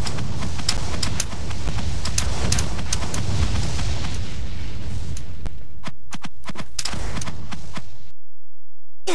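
Sword blows land again and again in a fast fight.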